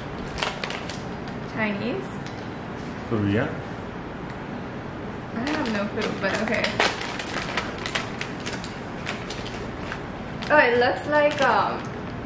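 A plastic snack wrapper crinkles.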